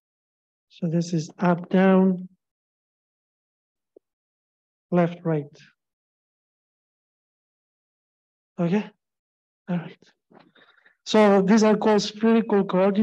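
A man speaks calmly in pauses, heard through a microphone on an online call.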